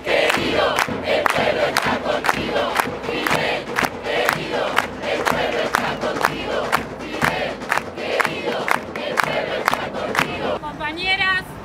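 A large crowd of men and women chants loudly outdoors.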